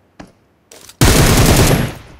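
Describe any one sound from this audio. Rapid gunfire bursts loudly.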